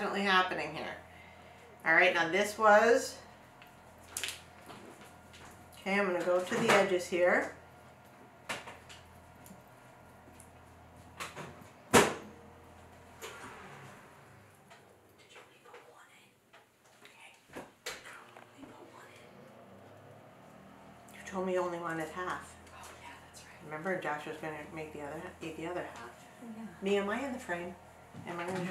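A middle-aged woman talks calmly close by.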